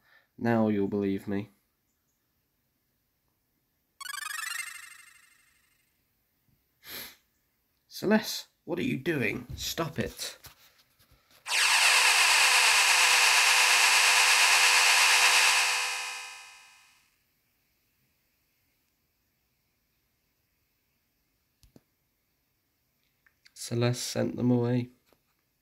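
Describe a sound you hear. A retro video game plays short electronic sound effects.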